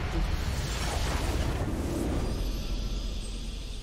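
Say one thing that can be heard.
A triumphant fanfare swells.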